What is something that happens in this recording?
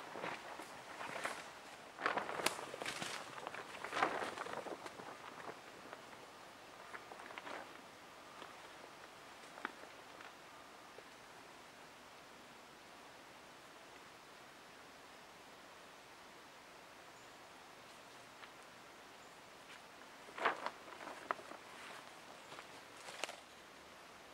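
A plastic tarp rustles and crinkles as it is handled.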